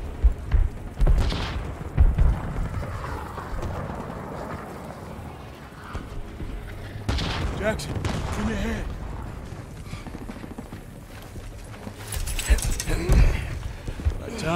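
Gunfire and explosions thud and crack nearby.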